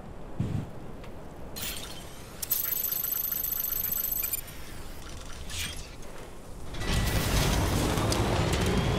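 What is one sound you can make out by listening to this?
Tyres crunch over rocky ground.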